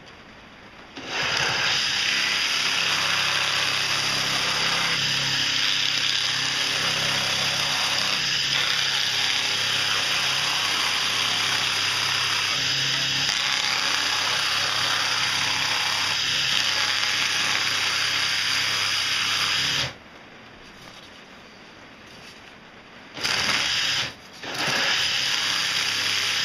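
A spinning cutter grinds loudly through foam.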